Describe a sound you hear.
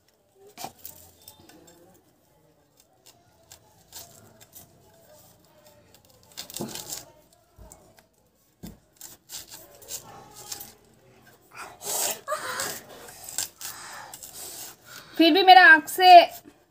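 Rubber rubs and squeaks under hands.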